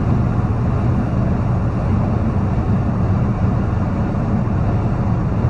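A truck's diesel engine rumbles steadily inside the cab.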